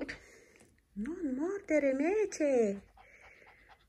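A puppy whines in a high, wavering voice.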